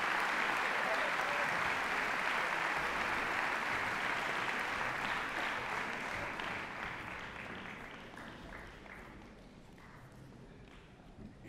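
A large crowd applauds in a big echoing hall, and the clapping slowly dies away.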